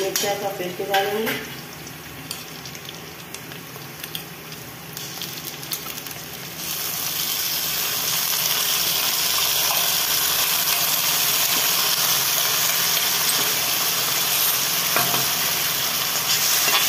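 Oil sizzles in a hot pan, growing louder.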